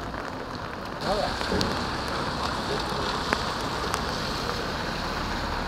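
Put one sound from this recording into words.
A car drives past on wet pavement with a hiss of tyres.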